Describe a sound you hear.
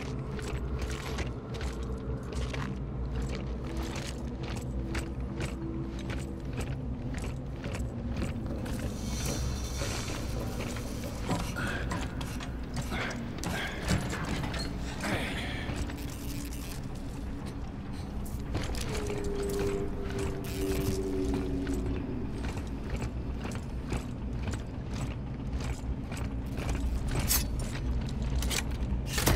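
Heavy footsteps clank steadily on a hard floor.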